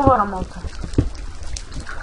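A stone block crunches as it is dug out in a video game.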